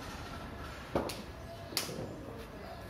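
A ball thuds against a wooden bat.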